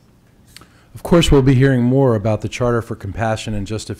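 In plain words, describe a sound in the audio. A man speaks calmly through a microphone, heard over loudspeakers in a room.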